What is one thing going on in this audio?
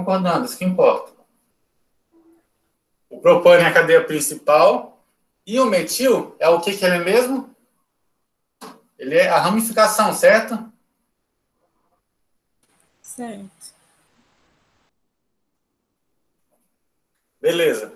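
A young man speaks calmly nearby, explaining in pauses.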